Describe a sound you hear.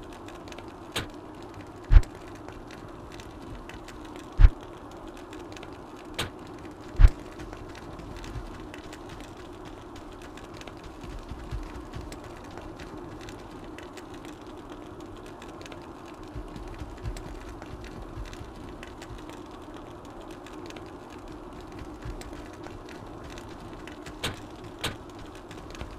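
A game interface gives short, sharp clicks now and then.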